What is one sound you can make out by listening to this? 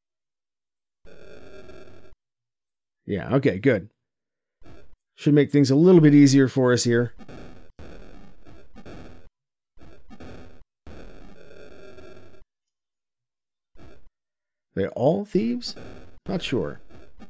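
Short bursts of electronic game sound effects play.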